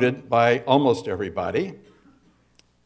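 An elderly man speaks calmly through a microphone in a large hall.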